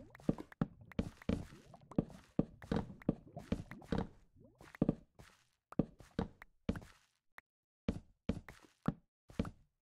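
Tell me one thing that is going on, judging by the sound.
Blocks break with quick, dull cracking thuds.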